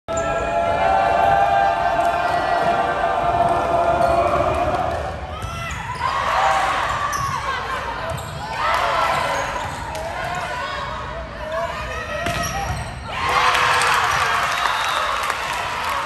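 A volleyball is hit with sharp thumps.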